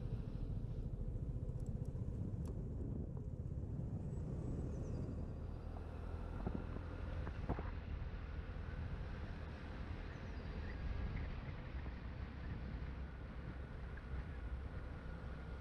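Wind rumbles steadily across the microphone outdoors as it moves along.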